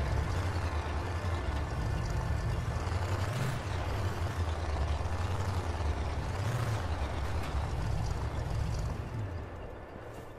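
An off-road buggy engine roars while driving over rough ground.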